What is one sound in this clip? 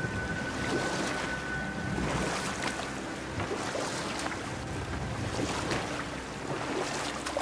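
Water laps and rushes steadily.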